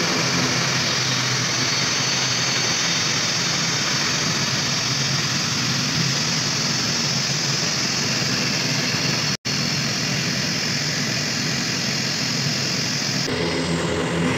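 A turboprop airliner taxis past.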